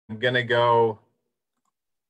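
A middle-aged man speaks briefly over an online call.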